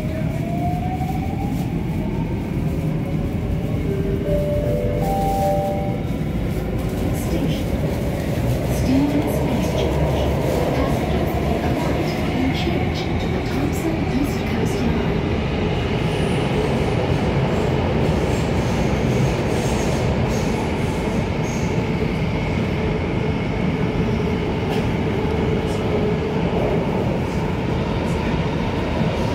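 A train rumbles and hums steadily along its track.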